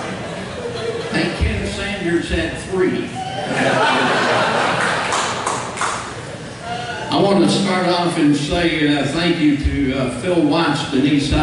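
A man speaks calmly into a microphone through loudspeakers in a large echoing hall.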